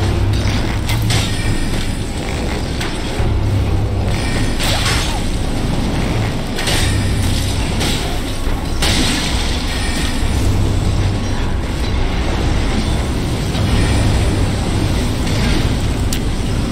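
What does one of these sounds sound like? Magic spells crackle and burst in sharp blasts.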